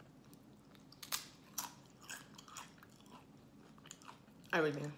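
A woman crunches tortilla chips close to the microphone.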